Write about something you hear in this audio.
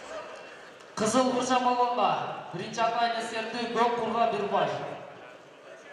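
A man in the crowd shouts loudly.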